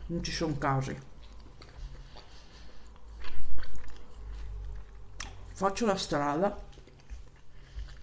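A woman chews food with soft mouth sounds.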